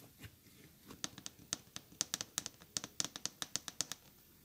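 Fingernails tap rapidly on a hard surface.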